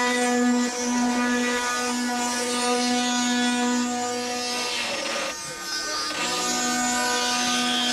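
A wooden ox cart's axle squeals with a steady, whining hum.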